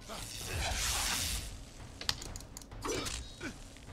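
A sword swooshes through the air with a magical whoosh.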